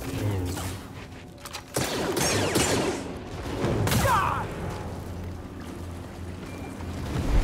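A lightsaber hums and swooshes through the air.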